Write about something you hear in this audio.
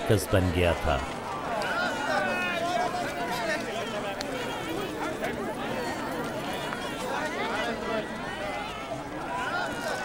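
A large crowd of men and women chatters and murmurs all around.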